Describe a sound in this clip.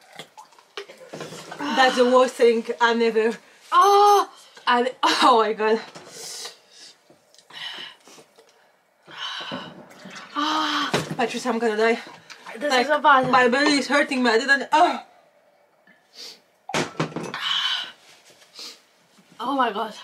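A second young woman talks and groans close by.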